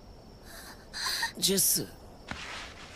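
A young woman speaks softly in a shaky voice.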